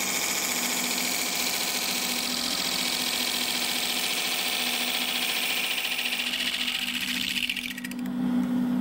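A chisel scrapes and hisses against spinning wood.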